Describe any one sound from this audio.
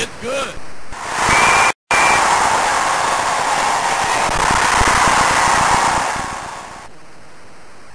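A crowd cheers loudly, then the cheering stops abruptly.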